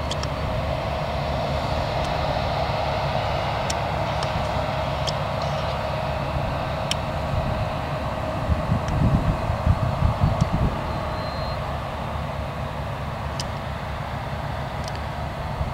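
Grain pours with a rushing hiss into a trailer.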